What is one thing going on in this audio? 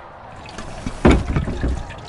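A heavy clay jug thumps down onto a wooden table.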